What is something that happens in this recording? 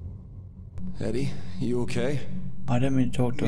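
A man asks a question in a concerned voice.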